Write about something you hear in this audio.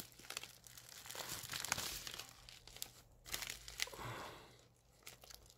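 A plastic game case slides out of a padded bag.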